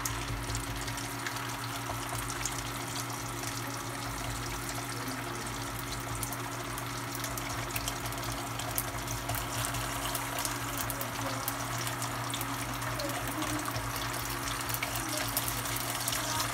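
A wooden spatula scrapes against a pan.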